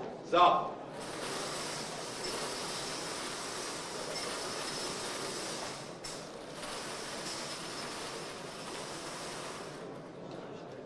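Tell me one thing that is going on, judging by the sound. Balls rattle and tumble inside a turning lottery drum.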